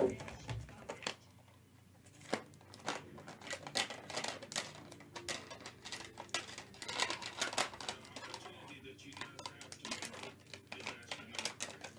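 Plastic card cases clack and click against each other.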